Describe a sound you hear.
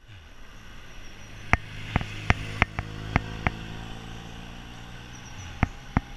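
A car's engine hums as it drives past nearby.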